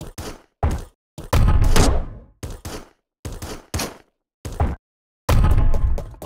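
Short electronic game sound effects play in quick bursts.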